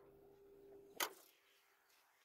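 A truck door shuts with a solid thud.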